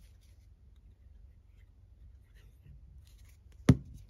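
A plastic glue bottle squeezes and dabs onto paper.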